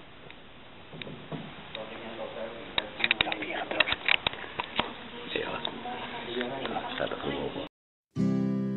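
Several adults talk quietly nearby.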